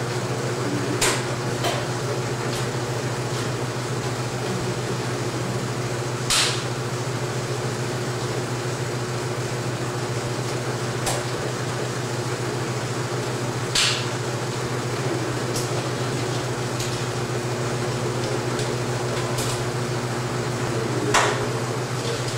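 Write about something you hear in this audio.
Metal latches and levers click and clack.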